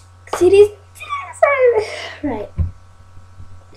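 A young girl laughs close by.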